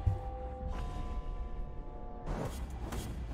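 A game's musical chime rings with steady tones.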